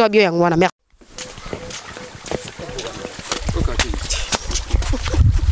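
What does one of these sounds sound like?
Shallow water flows and trickles nearby.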